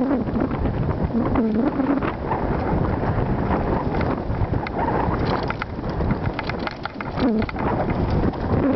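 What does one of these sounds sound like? Wind rumbles loudly past.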